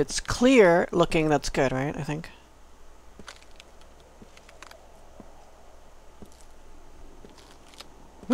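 Footsteps crunch on ice.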